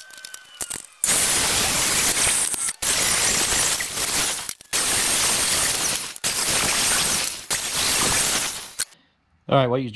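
An angle grinder screeches against metal.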